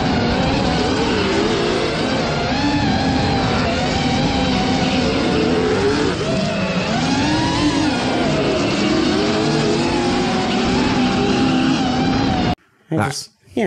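Tyres squeal on asphalt.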